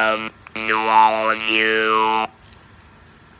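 A man blows into a reed call up close, making loud, wavering tones that slide up and down.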